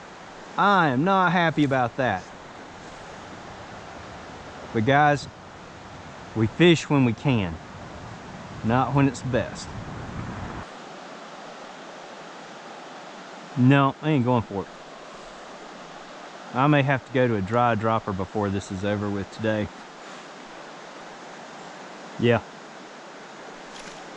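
A creek flows gently.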